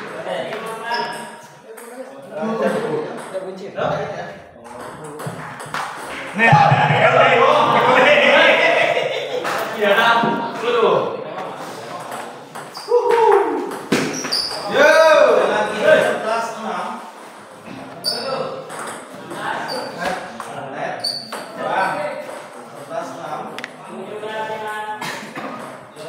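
Men talk and call out nearby.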